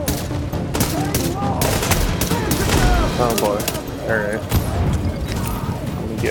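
Rifle shots crack in rapid bursts.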